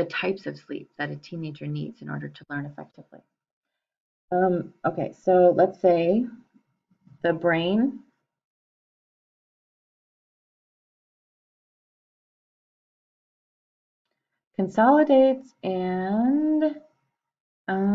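A woman speaks calmly into a microphone, explaining.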